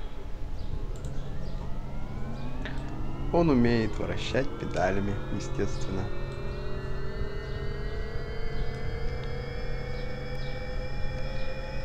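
An electric motor whirs, its pitch rising slowly and steadily.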